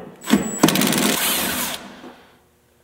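A power drill whirs briefly.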